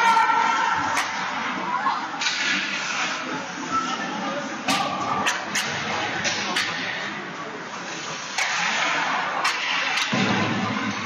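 Hockey sticks sharply clack against a puck.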